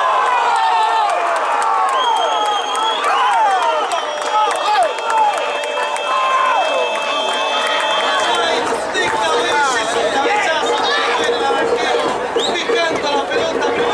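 A crowd of spectators cheers loudly outdoors.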